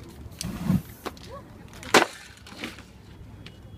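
Paper rustles and crackles as it is handled.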